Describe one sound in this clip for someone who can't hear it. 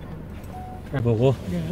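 A man answers briefly close by.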